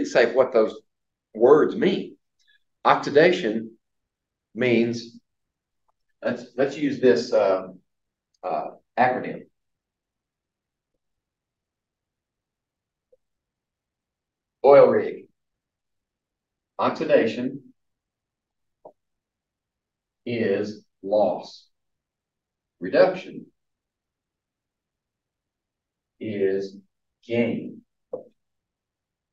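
An elderly man lectures with pauses.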